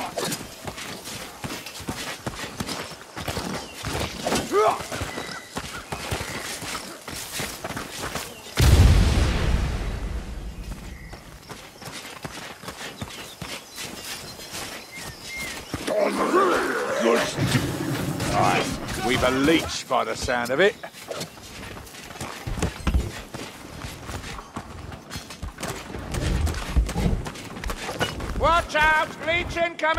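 Quick footsteps run over wooden floors and dirt.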